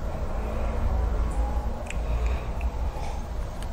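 A man sips a drink from a cup.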